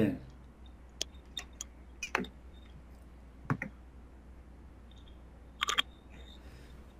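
Handling noises rustle and knock through a phone microphone.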